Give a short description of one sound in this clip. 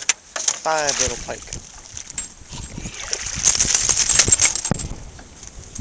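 Water splashes as a fish thrashes in a landing net.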